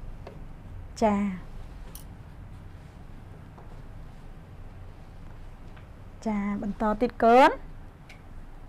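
A young woman speaks clearly and slowly into a microphone, as if teaching.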